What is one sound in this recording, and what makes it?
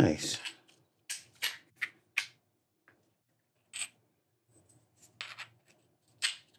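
A small plastic device clicks and rattles as it is handled.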